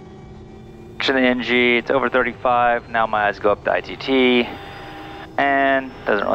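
A man speaks calmly and clearly through a headset microphone.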